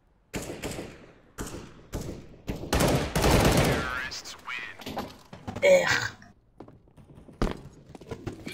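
Rifle shots ring out in quick bursts.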